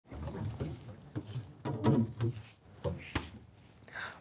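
A fridge door opens and closes with soft knocks.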